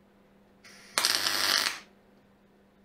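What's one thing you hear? An electric welder crackles and hisses in a short burst.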